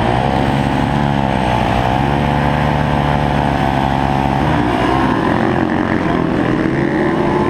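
Other motorcycle engines drone nearby.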